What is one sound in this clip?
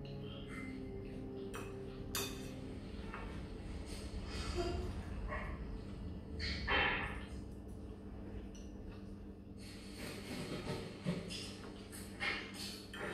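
Forks and knives clink against plates.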